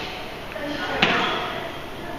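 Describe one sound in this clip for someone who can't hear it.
A loaded barbell thuds and clanks onto the floor.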